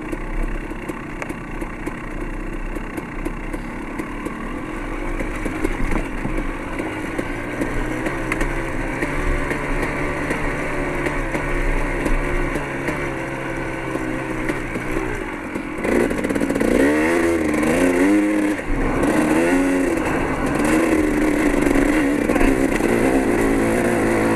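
Tyres crunch over loose gravel.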